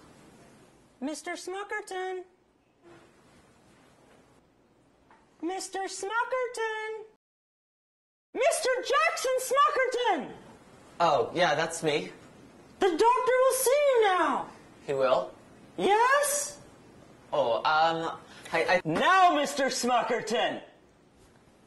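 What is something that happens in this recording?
A young woman speaks nearby with animation.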